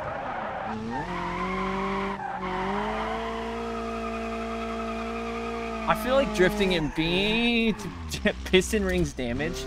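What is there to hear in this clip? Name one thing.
Tyres screech and squeal as a car drifts.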